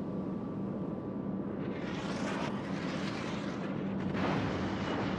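A ship's engine drones steadily.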